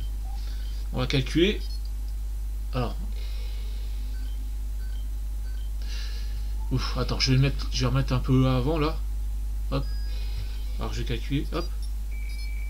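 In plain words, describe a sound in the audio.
A man speaks calmly in short bursts, close to a microphone.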